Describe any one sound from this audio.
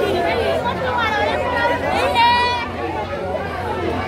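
A woman shouts loudly close by.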